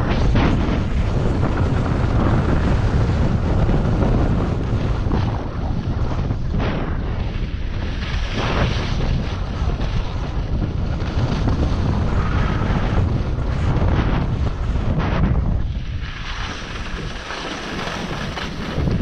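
Wind rushes past the skier.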